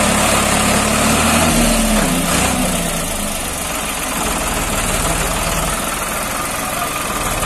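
A tractor blade scrapes through dirt and stones.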